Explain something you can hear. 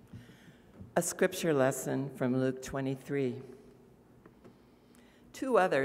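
An elderly woman reads aloud into a microphone.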